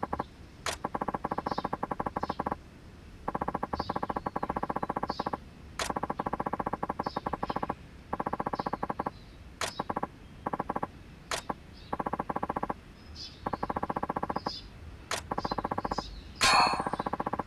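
Rapid soft beeps tick in quick bursts, pausing now and then.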